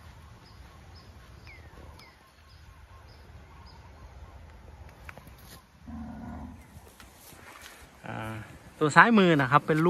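A calf tears and chews grass up close.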